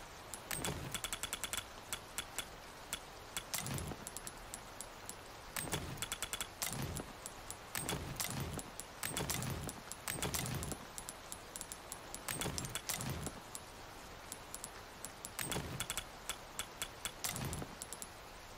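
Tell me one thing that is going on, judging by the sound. Soft thuds sound as items are picked up and placed.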